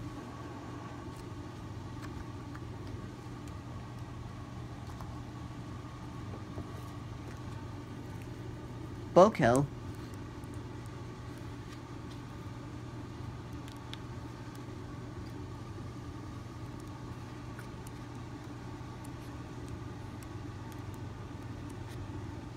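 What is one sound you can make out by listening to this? Paper pages rustle softly as a thin book's pages are turned.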